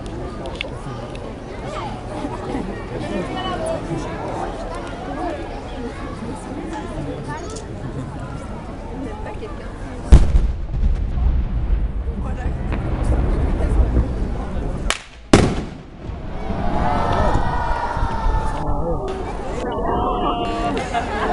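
A crowd of people chatters and calls out outdoors nearby.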